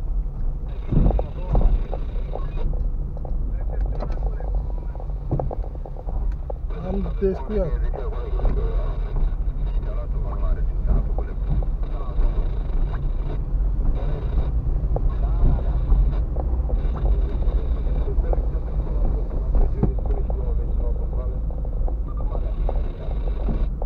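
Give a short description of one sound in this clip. A car engine rumbles low and steady inside the car.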